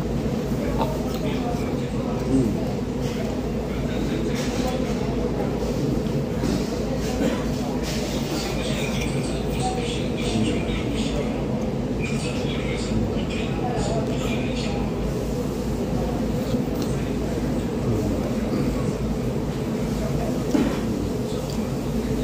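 A man slurps soup from a spoon up close.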